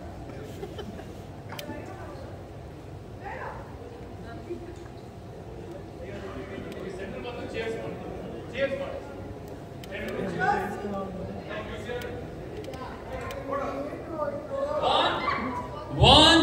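A small group of people chatter and laugh nearby.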